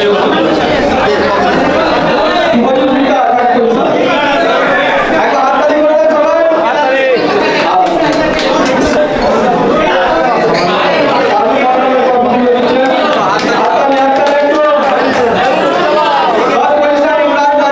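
A man speaks into a microphone over a loudspeaker, announcing with animation.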